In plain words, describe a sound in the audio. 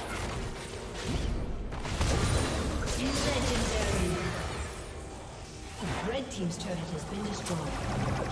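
Magic spells blast and crackle in a fast fight.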